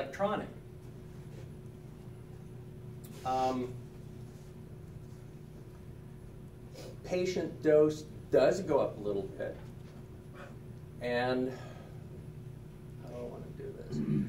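A middle-aged man speaks calmly in short bursts.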